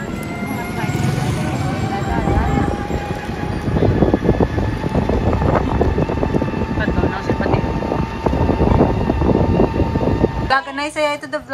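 A motor tricycle engine rumbles steadily while riding along a street.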